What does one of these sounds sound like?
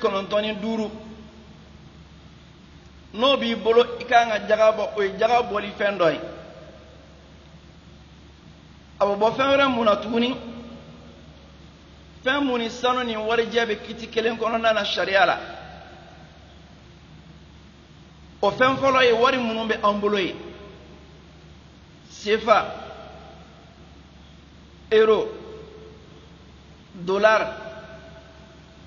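An elderly man preaches forcefully into a microphone in short bursts with pauses.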